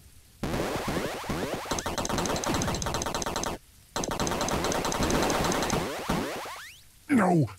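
Electronic video game pinball bumpers chime as a ball bounces off them.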